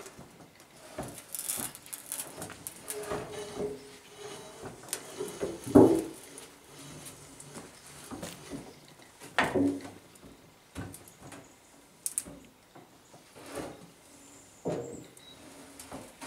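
A thin metal sheet rattles and flexes as a gloved hand pushes it.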